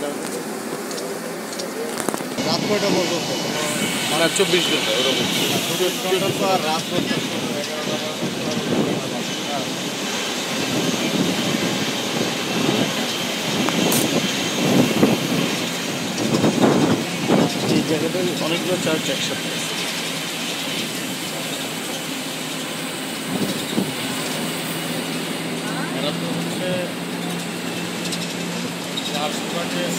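Wind rushes past on an open-top bus.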